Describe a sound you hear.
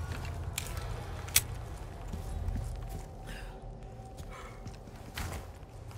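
Footsteps crunch on the ground outdoors.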